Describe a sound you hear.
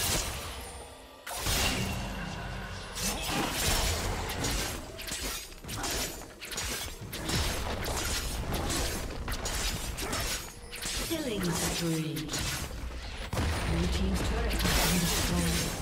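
Video game spell effects crackle and burst in quick succession during a fight.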